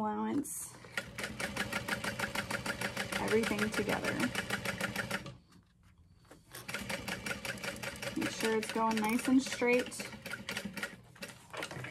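A sewing machine stitches in fast, rhythmic bursts.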